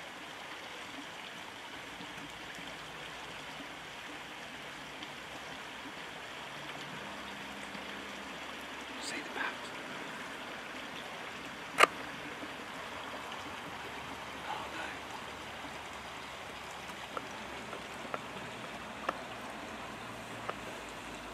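A stream of water flows steadily.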